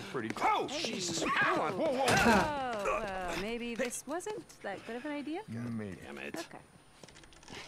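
Men and a woman talk in a tense exchange.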